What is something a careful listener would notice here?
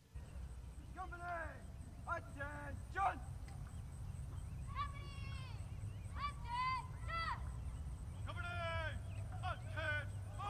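A man shouts drill commands in the open air.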